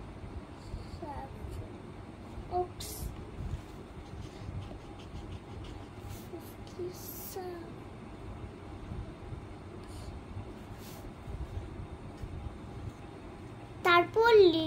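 A young girl speaks softly up close.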